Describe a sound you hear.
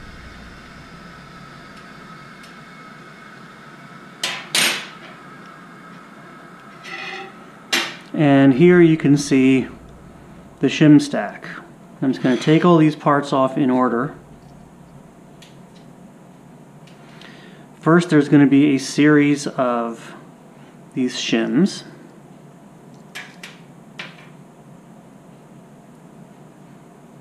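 Small metal parts click and tap together in someone's hands.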